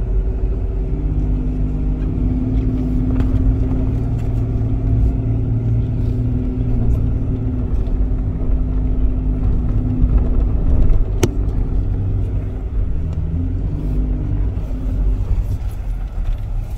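Off-road vehicle engines rumble and rev nearby, outdoors.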